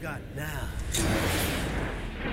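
A metal can clatters onto a hard floor.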